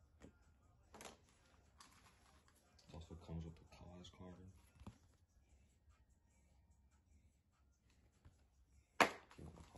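Paper and card rustle as hands handle them.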